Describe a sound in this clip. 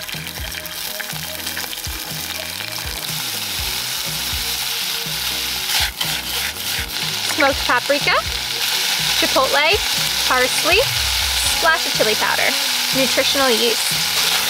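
Food sizzles in a hot pan, growing louder.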